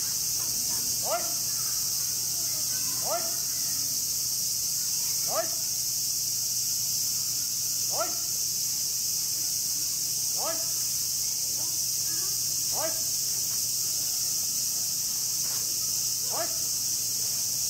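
A man calls out short commands outdoors.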